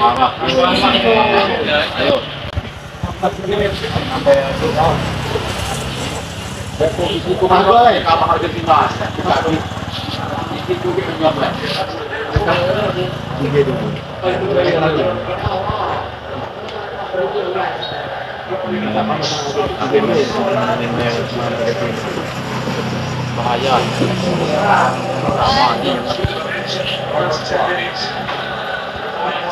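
A television plays a match broadcast with a commentator talking.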